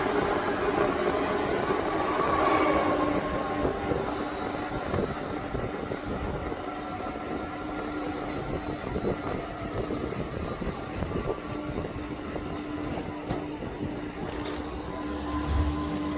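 An electric rickshaw hums along the road nearby.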